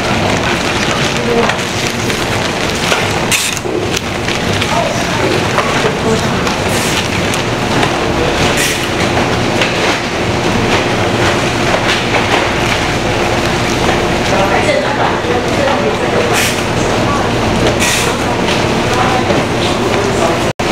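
A conveyor belt runs with a low hum.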